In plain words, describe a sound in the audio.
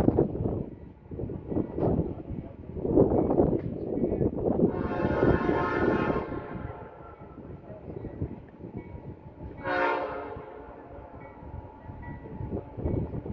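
A diesel locomotive idles nearby with a low rumble.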